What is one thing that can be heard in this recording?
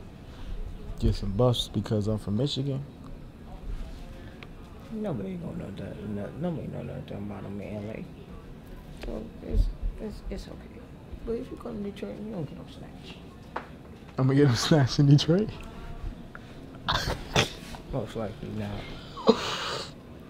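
Young men talk casually, close by.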